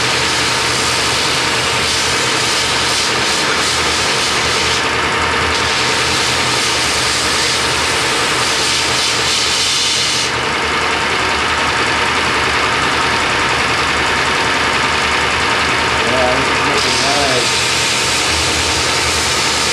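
A belt grinder runs.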